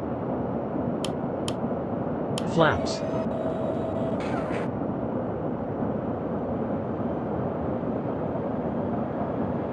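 A jet engine hums steadily with a rushing sound.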